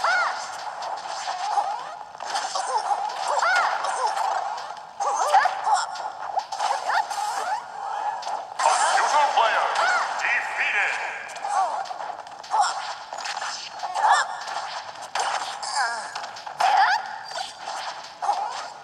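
Game fighters trade hits with sharp punching and blasting effects.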